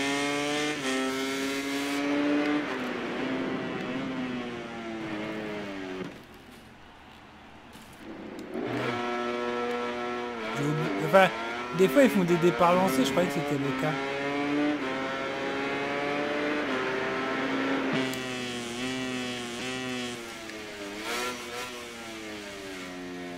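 A motorcycle engine screams at high revs, rising and falling as it shifts gears.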